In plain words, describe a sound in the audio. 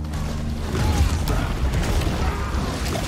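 A boat explodes with a loud bang.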